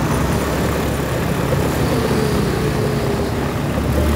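A car drives past on the road.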